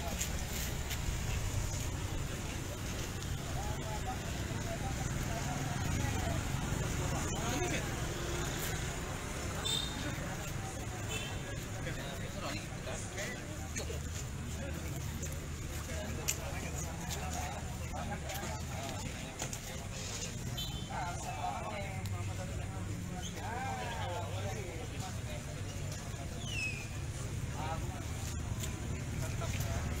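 A crowd of men and women murmurs and talks outdoors.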